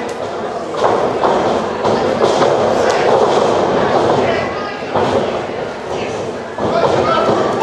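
Bodies slam onto a wrestling ring's mat with loud thuds.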